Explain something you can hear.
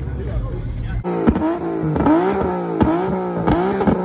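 A car engine revs loudly up and down as the car drives past.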